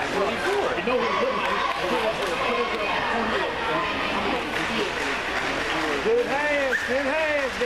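Many young men talk and shout at once in a large echoing hall.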